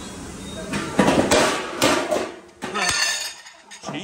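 A metal serving lid clanks as it is lifted.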